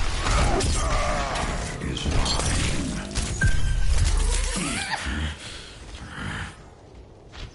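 Game guns fire in rapid bursts with impacts and explosions.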